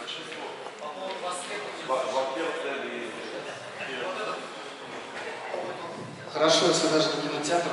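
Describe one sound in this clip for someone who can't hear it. A man speaks steadily into a microphone, heard through a loudspeaker in an echoing room.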